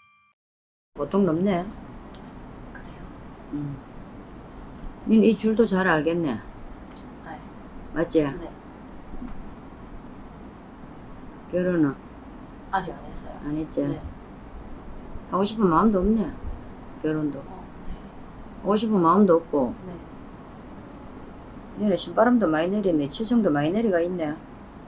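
A middle-aged woman speaks close by with animation, in short bursts.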